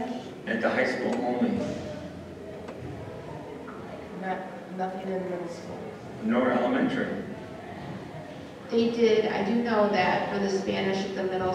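An adult speaks calmly through a microphone in a large echoing hall.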